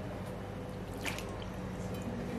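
Meat slides off a knife and splashes into a pan of water.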